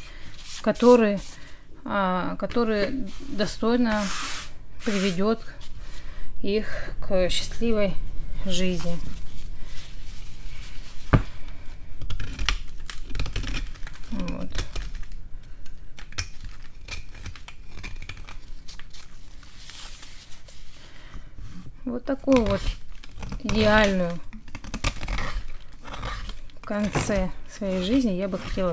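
A blade scrapes and shaves crumbly material in short strokes.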